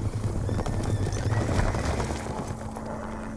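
Horses gallop over rough ground.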